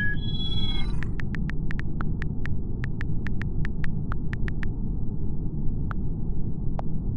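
Phone keyboard clicks tap quickly and evenly.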